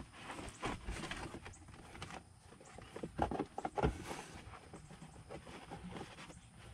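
Hands rustle and handle wires against carpet.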